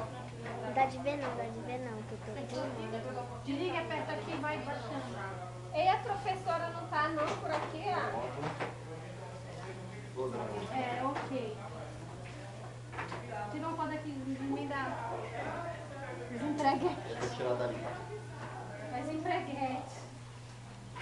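Young women talk and laugh nearby.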